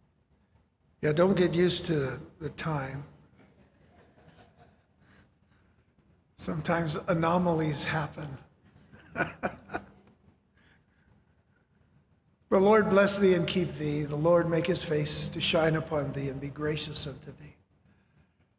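A middle-aged man speaks calmly into a microphone, pausing between phrases.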